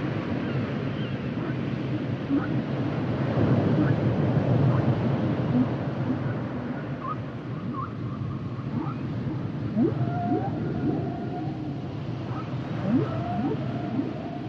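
Dolphins whistle with rising, gliding squeaks underwater.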